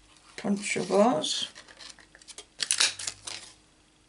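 A paper punch clicks as it presses through paper.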